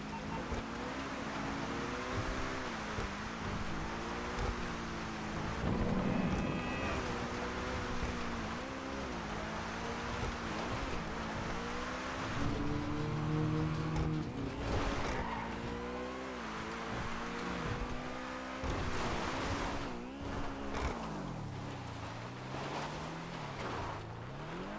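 A sports car engine roars and revs up and down as the car speeds along.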